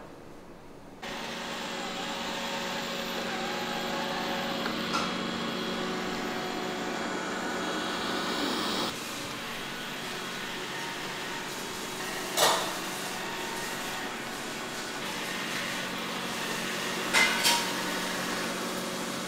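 A robot vacuum hums steadily as it runs.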